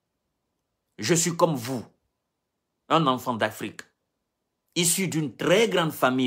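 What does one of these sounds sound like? A man speaks close to the microphone with animation, in short bursts.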